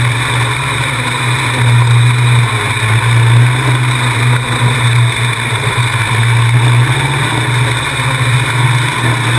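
An engine roars loudly and steadily up close.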